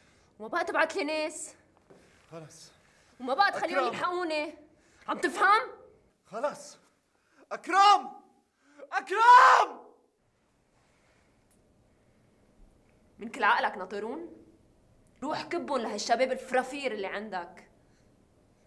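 A young woman shouts pleadingly nearby.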